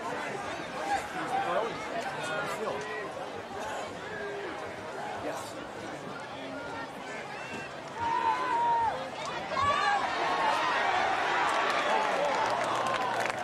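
A crowd of spectators talks and murmurs outdoors throughout.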